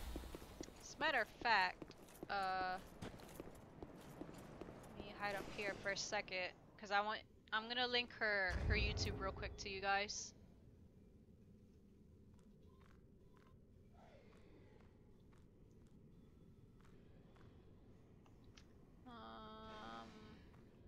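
A young woman talks with animation into a headset microphone, close up.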